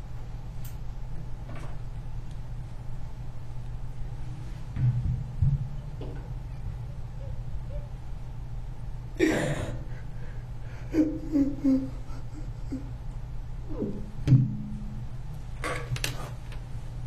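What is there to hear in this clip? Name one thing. An elderly man sobs and breathes heavily.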